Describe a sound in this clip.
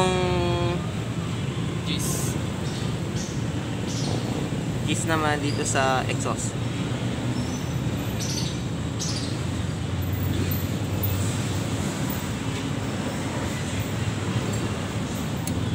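Small metal parts click as an engine is worked on by hand.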